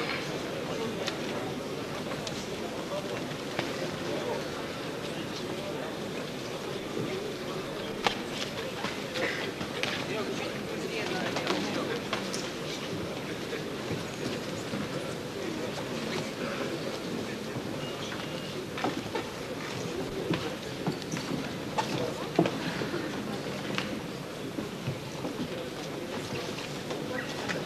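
A large crowd murmurs steadily in a big echoing hall.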